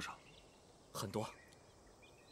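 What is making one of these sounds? A young man answers briefly and softly nearby.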